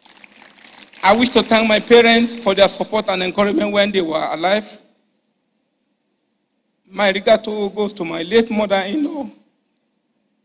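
A man speaks slowly and with emotion through a microphone in a large hall.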